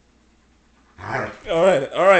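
A dog barks loudly close by.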